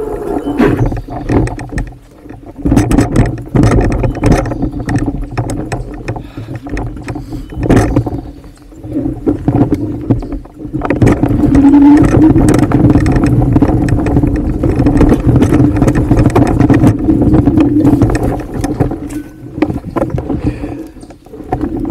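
A bicycle frame rattles and clatters over roots.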